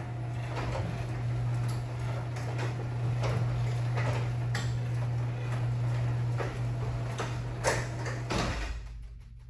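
A garage door opener motor hums steadily.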